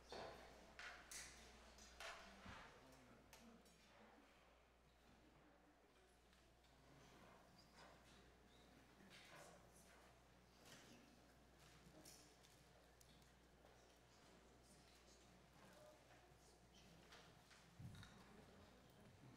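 A brass band plays softly.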